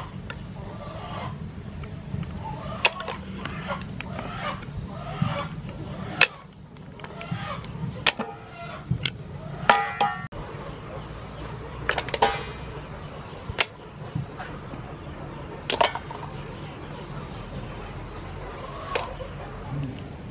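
Clam shells click and clatter against each other.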